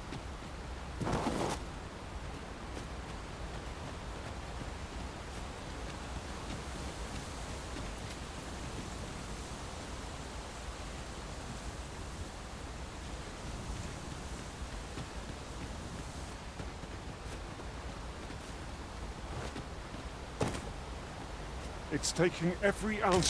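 Footsteps crunch steadily over stone and grass.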